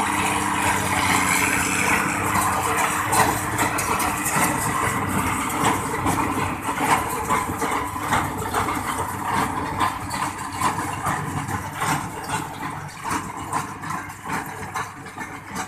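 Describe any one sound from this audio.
A tractor engine rumbles steadily close by, then slowly fades.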